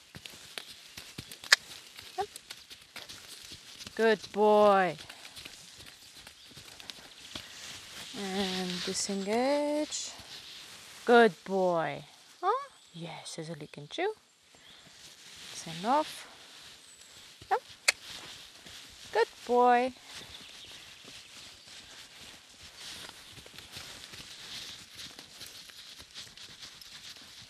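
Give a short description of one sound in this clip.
A horse's hooves thud softly on sand.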